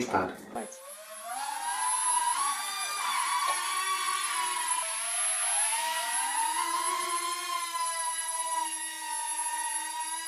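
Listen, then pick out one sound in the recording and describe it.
A small toy drone's propellers whir with a high buzzing whine that rises and falls in pitch.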